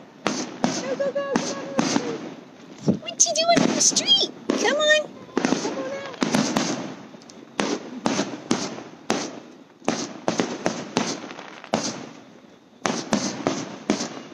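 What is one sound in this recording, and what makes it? Fireworks crackle and whistle as they shoot up.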